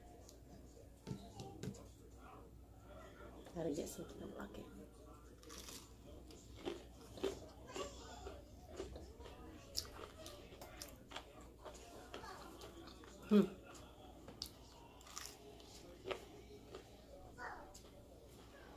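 A woman chews crunchy fried food loudly close to a microphone.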